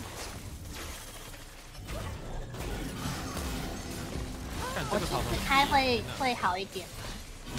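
Spell effects whoosh and clash in a video game battle.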